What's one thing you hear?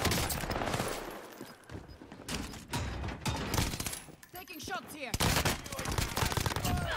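Rifle gunshots fire in rapid bursts.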